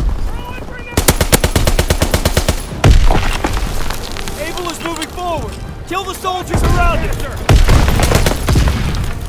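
A rifle fires rapid, loud shots.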